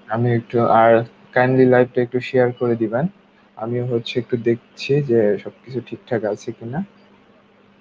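A young man speaks with animation, close to a microphone in an online call.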